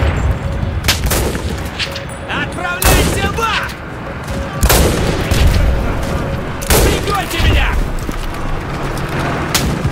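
A rifle bolt clacks as it is worked.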